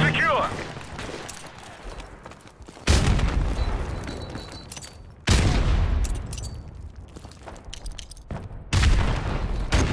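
Footsteps crunch quickly over gravel and rubble.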